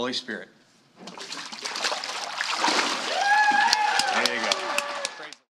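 Water splashes and sloshes as a person is dipped under and lifted out.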